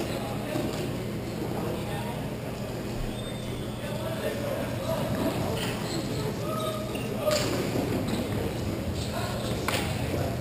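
Plastic wheels roll and scrape across a hard floor in a large echoing hall.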